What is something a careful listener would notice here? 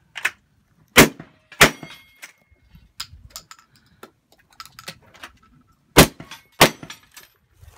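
A lever-action rifle fires several shots.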